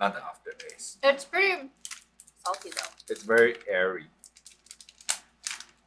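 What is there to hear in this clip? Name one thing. A snack bag crinkles in a young woman's hands.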